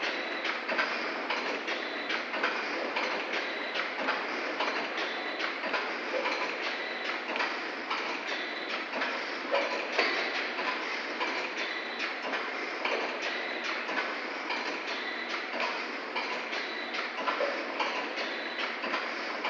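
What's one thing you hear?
A packaging machine hums and clatters steadily in a large echoing hall.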